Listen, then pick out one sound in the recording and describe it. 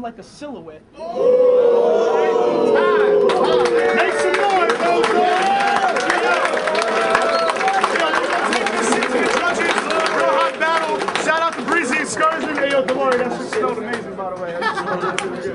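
A crowd cheers and shouts loudly.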